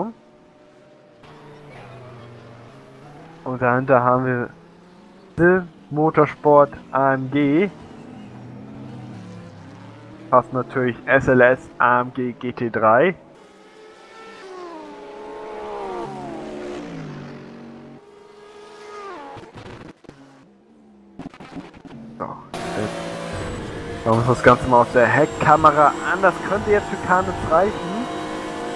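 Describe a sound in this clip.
Racing car engines roar and rise and fall in pitch as the cars speed past.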